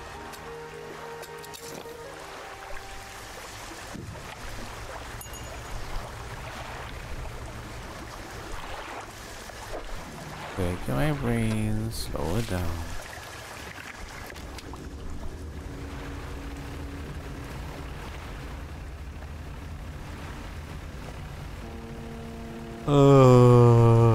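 A boat engine hums low and steady.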